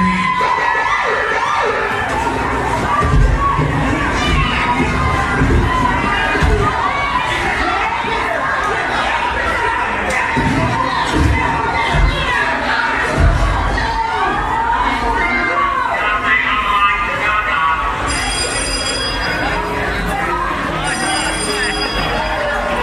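A crowd cheers and shouts over the music.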